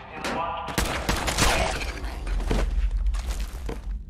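A heavy blow thuds into a body.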